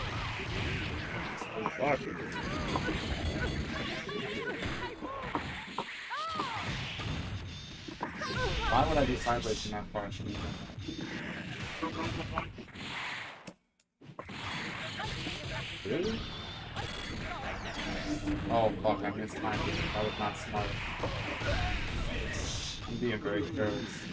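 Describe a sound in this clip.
Fighting game sound effects of punches, blasts and zaps play rapidly.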